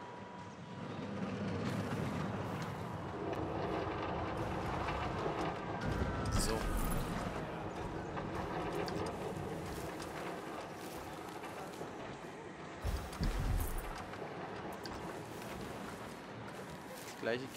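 A roller coaster train rumbles and clatters along its track.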